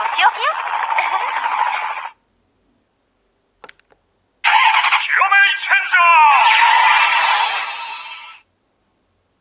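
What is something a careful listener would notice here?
A toy device plays loud electronic sound effects through a small speaker.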